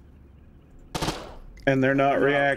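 A pistol fires a single sharp shot.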